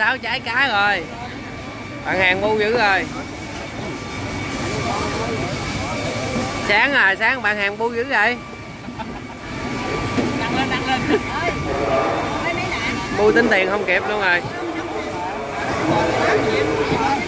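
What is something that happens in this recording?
A busy crowd chatters all around in a large echoing hall.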